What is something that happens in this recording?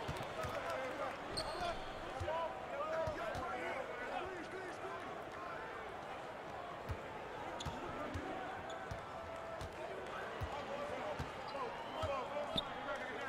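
A basketball bounces with dull thuds on a hardwood floor.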